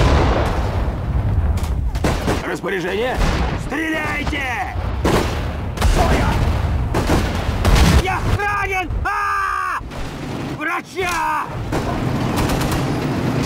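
Shells explode with deep booms.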